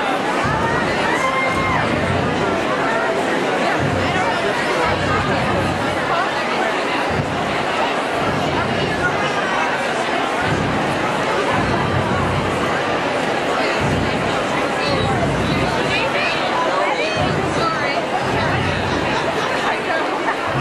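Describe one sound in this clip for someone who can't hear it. A large crowd chatters and cheers loudly all around, outdoors.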